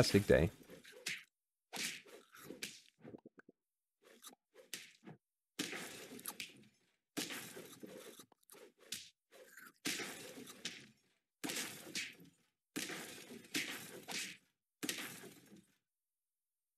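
Cartoon battle effects thump and whoosh in quick bursts.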